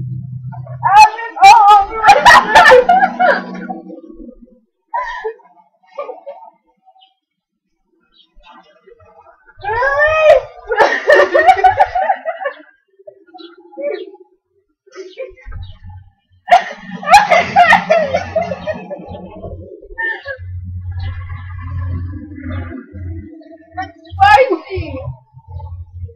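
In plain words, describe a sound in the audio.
A young woman speaks and laughs loudly close by, with animation.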